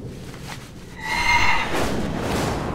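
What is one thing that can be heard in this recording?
A shimmering magical chime rings out.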